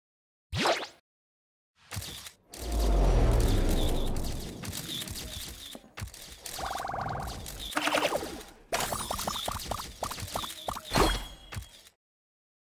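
Cartoon game sound effects pop and chime in quick bursts.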